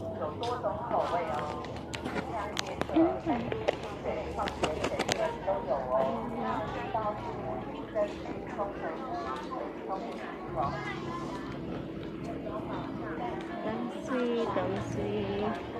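Men and women in a passing crowd chatter outdoors.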